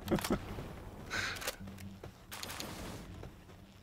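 A gun fires in sharp, quick shots.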